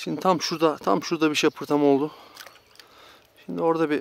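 A fishing lure splashes into calm water.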